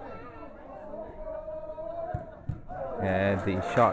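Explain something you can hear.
A football is kicked with a dull thud outdoors.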